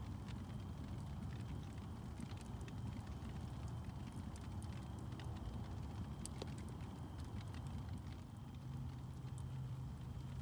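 Embers of a wood fire crackle softly.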